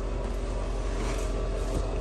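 A hand pushes a padded seat cushion with a soft thump.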